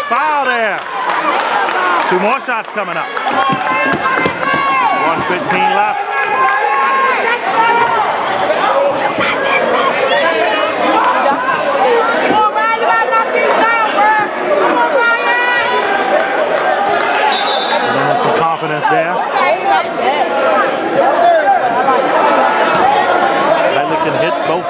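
A crowd of spectators chatters and shouts loudly in an echoing gym.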